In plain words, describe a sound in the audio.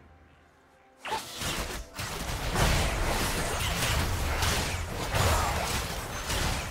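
Game spell effects whoosh and clash in a fight.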